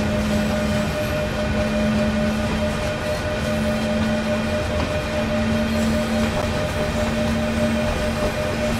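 Train wheels rumble and clatter over the track.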